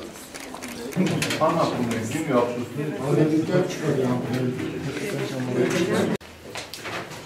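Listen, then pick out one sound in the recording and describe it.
An adult man talks nearby.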